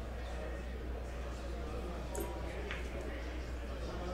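A cue ball is set down on a pool table with a soft knock.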